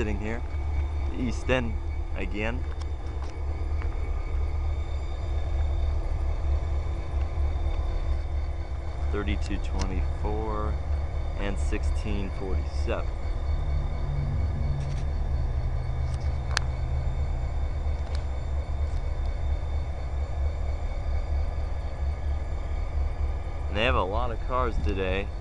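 Diesel locomotives rumble steadily past close by.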